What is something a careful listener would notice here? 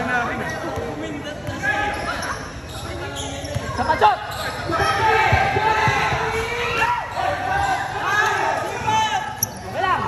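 A crowd of young spectators shouts and cheers.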